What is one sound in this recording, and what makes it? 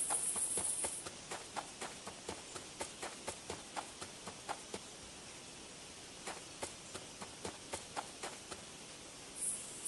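Small paw footsteps patter on a dirt path.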